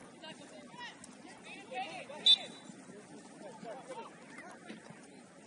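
A crowd of spectators calls out and cheers from the sideline outdoors.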